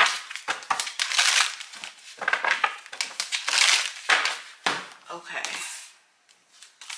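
Playing cards rustle and riffle as they are shuffled.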